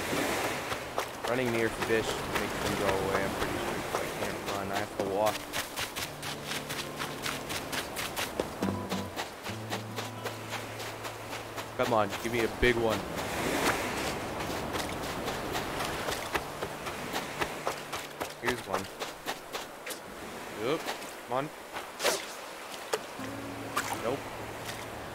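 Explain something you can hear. Gentle waves wash onto a shore.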